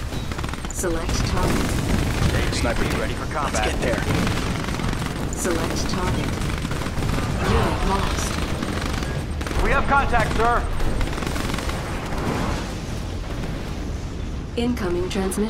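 Gunfire rattles.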